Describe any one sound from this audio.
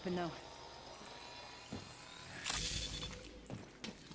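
A healing syringe clicks and hisses in a video game.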